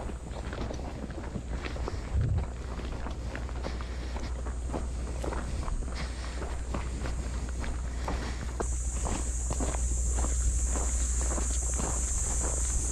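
Boots crunch steadily on a dirt track.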